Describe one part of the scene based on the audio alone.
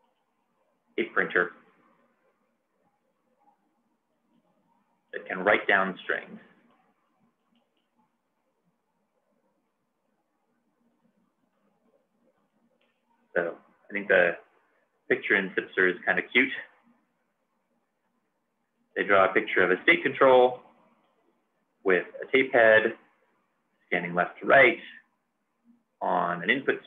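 A man speaks calmly into a close microphone, pausing often.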